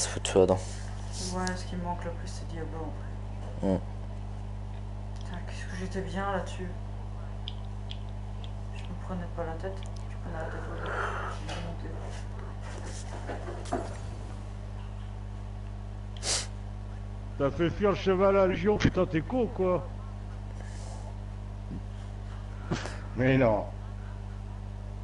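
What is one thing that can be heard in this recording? A woman talks calmly and evenly.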